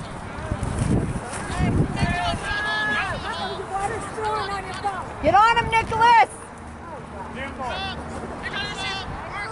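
Young players shout across the field in the distance.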